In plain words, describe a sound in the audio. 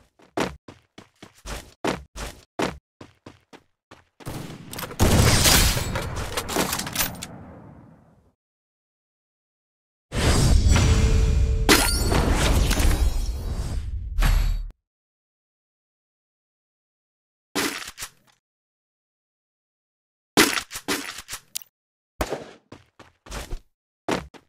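Footsteps thud quickly on metal and concrete.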